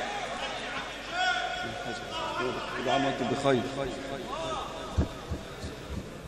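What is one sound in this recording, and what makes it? Men in a crowd call out in approval.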